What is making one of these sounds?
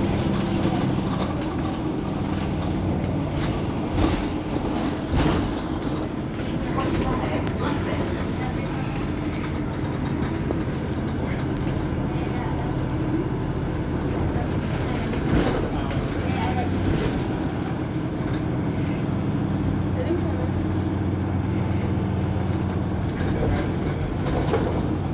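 A bus engine idles nearby with a steady low hum.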